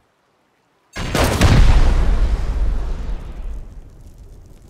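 A heavy machine gun fires a loud, rapid burst.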